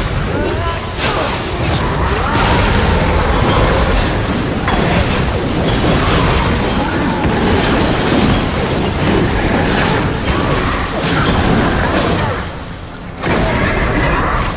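Blades clash and slash in rapid hits.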